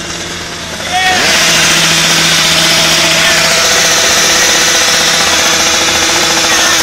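A small engine runs.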